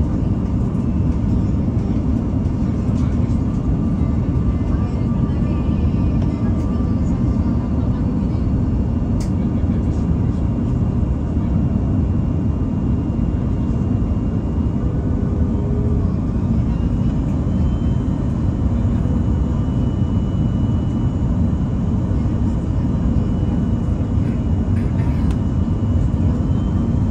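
A plane's engines roar steadily in the cabin.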